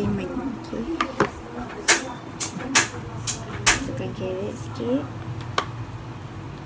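A plastic bowl clatters and knocks against a hard surface.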